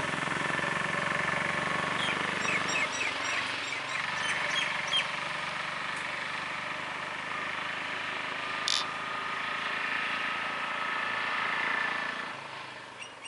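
A bus engine idles nearby with a low rumble.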